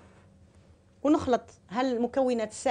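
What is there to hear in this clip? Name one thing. A middle-aged woman speaks calmly and clearly into a microphone.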